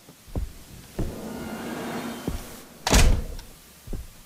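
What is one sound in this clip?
A door creaks open and bumps against a wall.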